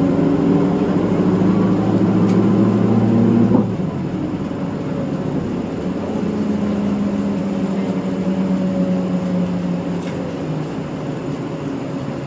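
A train's motor hums steadily as the train rolls along the tracks.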